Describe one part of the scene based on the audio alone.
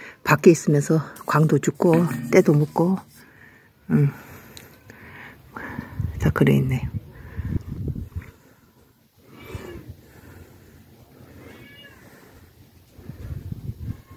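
Clothing rustles and rubs close against the microphone.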